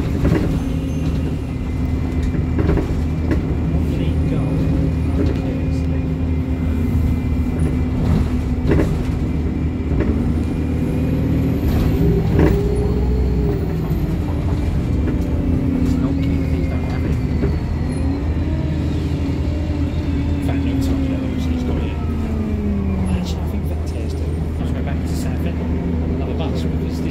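A bus engine hums and drones steadily, rising and falling in pitch.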